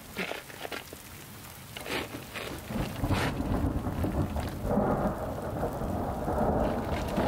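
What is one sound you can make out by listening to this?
Rain patters steadily on rocks and wet ground outdoors.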